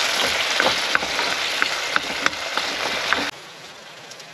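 Sauce sizzles loudly in a hot pan.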